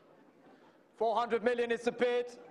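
A middle-aged man speaks loudly and animatedly into a microphone.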